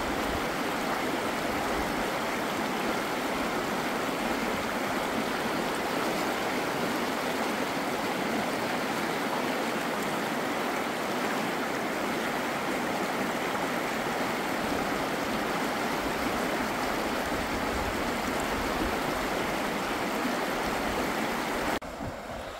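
A fast river rushes loudly over rocks.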